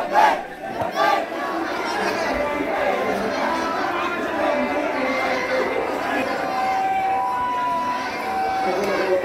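A crowd murmurs and talks outdoors.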